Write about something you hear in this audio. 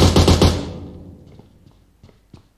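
A rifle fires a rapid burst of shots that echoes away.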